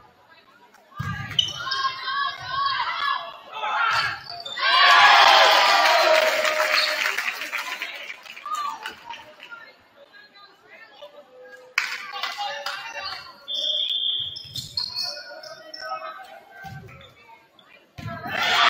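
Young women players call out to each other on the court.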